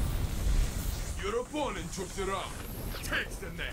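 A muffled explosion bursts with a deep rumble.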